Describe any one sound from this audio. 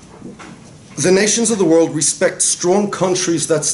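A man speaks calmly into a microphone, lecturing.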